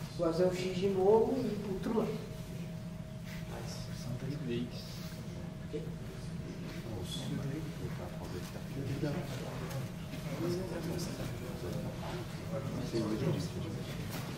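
Bodies thud and shuffle on a padded mat.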